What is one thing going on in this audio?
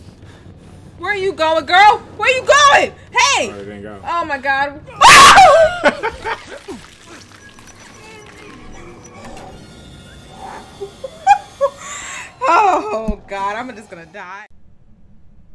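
A young woman shrieks and laughs loudly into a microphone.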